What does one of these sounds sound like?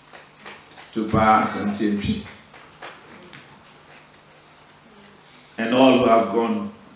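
A man speaks slowly and solemnly into a microphone in an echoing hall.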